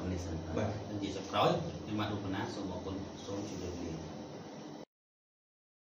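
A man speaks steadily to a microphone, as if presenting.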